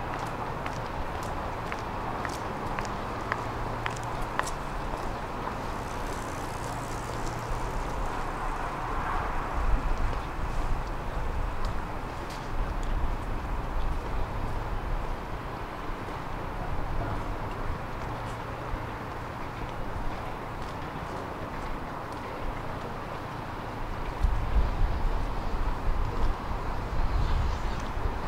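Traffic hums steadily along a nearby city road, heard outdoors.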